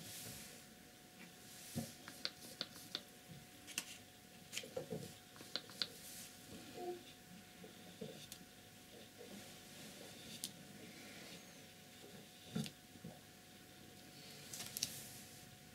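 A paintbrush taps and swishes in a paint palette.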